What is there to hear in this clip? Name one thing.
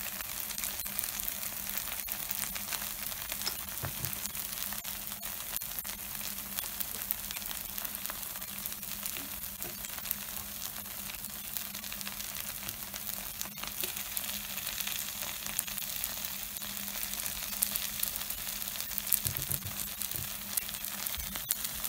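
A wooden skewer taps and scrapes against a metal griddle.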